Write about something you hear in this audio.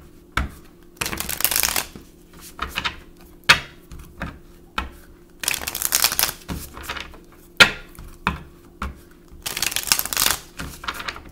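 Playing cards riffle together in quick bursts.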